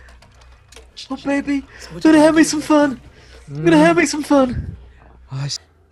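A young man laughs heartily close to a microphone.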